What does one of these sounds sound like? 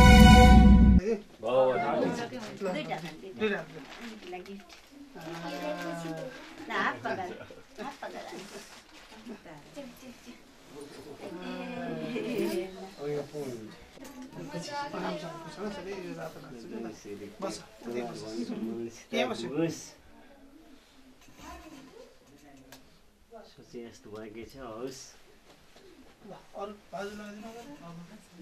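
Several people talk and chatter nearby in a small room.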